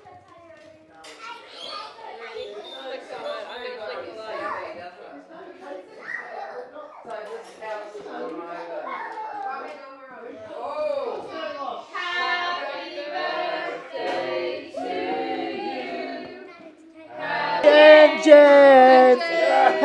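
A group of children sing together nearby.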